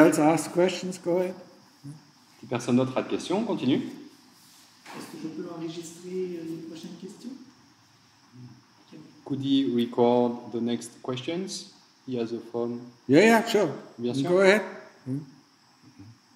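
An elderly man speaks calmly and slowly into a nearby microphone, with pauses.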